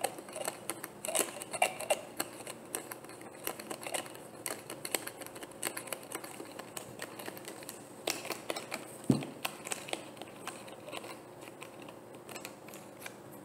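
Fingernails tap and click on a plastic bottle.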